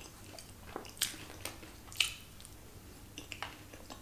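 A young woman makes loud smacking sounds with her lips.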